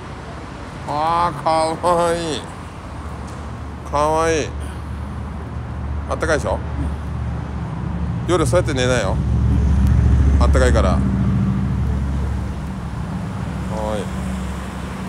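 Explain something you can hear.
A bearded man speaks with animation and laughs nearby.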